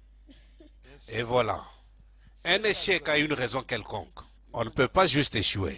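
A man speaks forcefully through a microphone.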